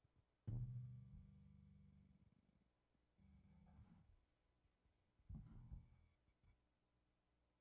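An electric bass guitar plays low notes that ring out and fade.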